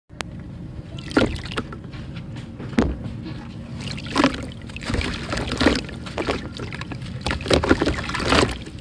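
Wet clumps of dirt crumble and splash into water.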